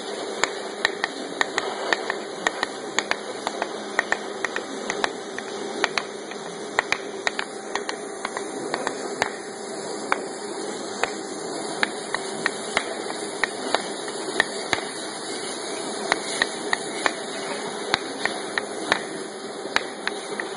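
A bird taps and clatters about in a wire cage.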